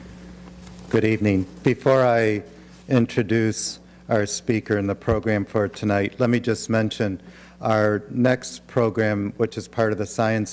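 A man speaks calmly into a microphone in an echoing hall.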